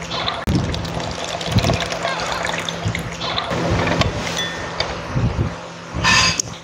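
A hand juicer squeaks and grinds as fruit is pressed.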